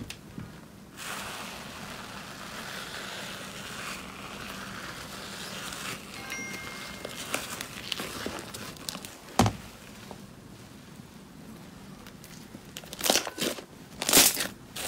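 Fingers stretch and pull thick fluffy slime with a soft crackling.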